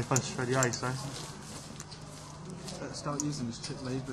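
A dealer sweeps playing cards across a felt table.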